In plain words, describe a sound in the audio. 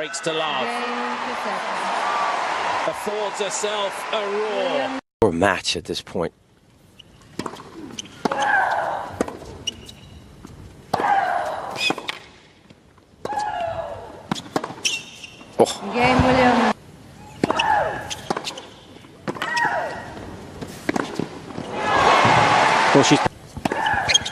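A crowd applauds loudly in a large arena.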